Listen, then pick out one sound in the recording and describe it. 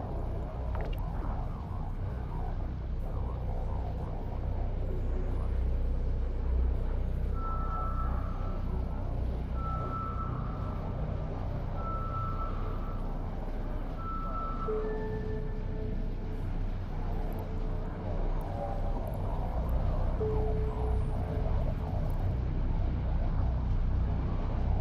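A deep, steady engine rumble drones throughout.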